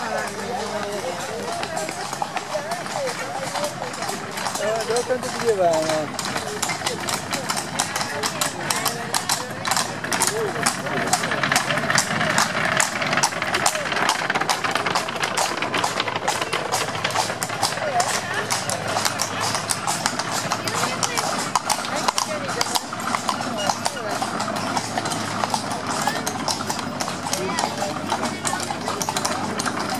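Horses' hooves clop on cobblestones as carriages pass.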